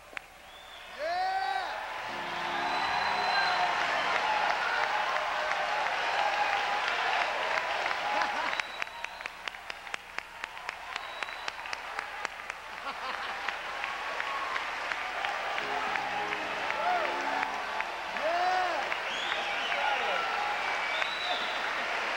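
A large crowd cheers loudly in an echoing hall.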